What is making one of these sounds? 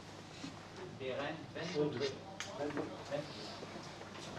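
Men talk quietly in the background.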